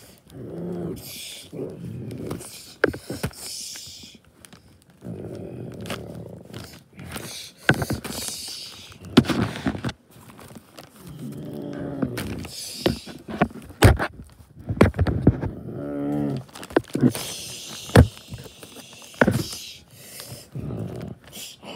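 Plastic toys knock and clatter together.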